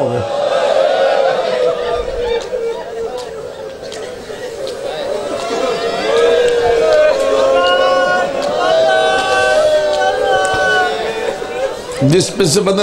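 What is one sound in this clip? A middle-aged man chants in long drawn-out tones through a microphone.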